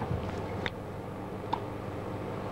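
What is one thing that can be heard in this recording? A tennis ball is struck with a racket in sharp pops.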